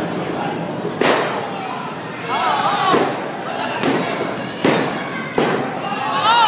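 Wrestlers thud heavily onto a ring mat.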